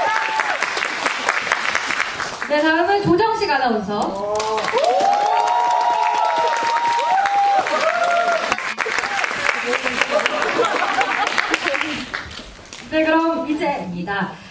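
An audience claps and cheers in a large echoing hall.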